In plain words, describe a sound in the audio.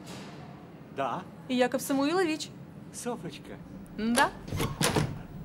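A young woman speaks quietly up close.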